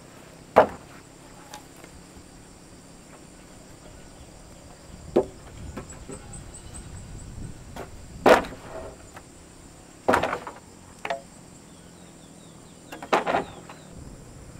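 Wooden poles knock against each other.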